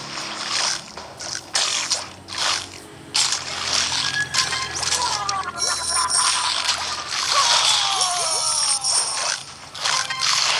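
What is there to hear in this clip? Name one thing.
Crunching bites and chomps sound in quick bursts.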